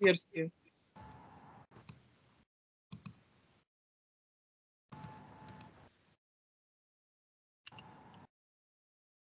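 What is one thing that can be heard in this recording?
A woman speaks briefly and quietly through an online call.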